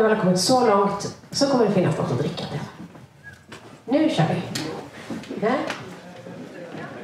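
A woman speaks into a microphone over loudspeakers in an echoing room.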